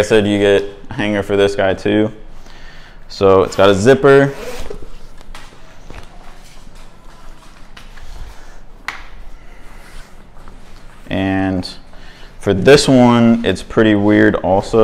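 Heavy fabric rustles as it is handled.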